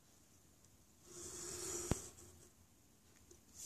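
A pencil scratches along paper.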